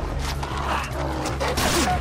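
A dog growls and snarls up close.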